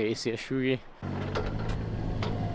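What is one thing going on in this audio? An excavator engine rumbles steadily.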